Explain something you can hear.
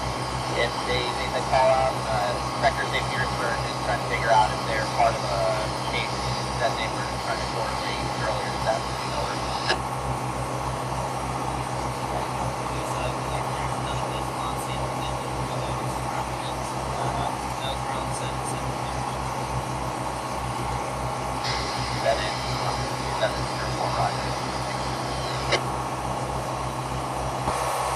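A boat engine drones steadily with a low throb.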